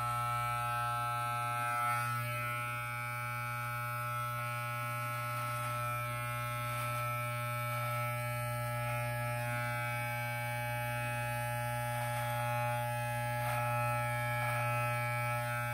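Electric hair clippers cut through a thick beard with a crackling sound.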